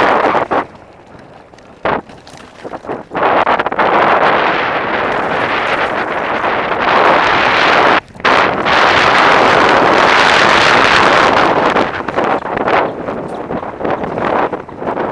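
Bicycle tyres roll and rattle fast over a bumpy dirt track.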